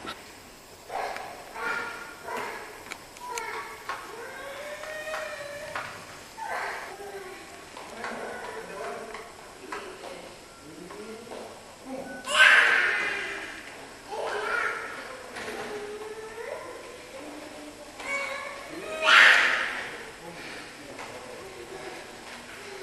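A small child squeals loudly in an echoing hall.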